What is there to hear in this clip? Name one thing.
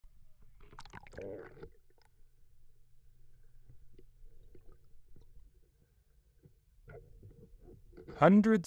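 Water bubbles and crackles softly, heard muffled underwater.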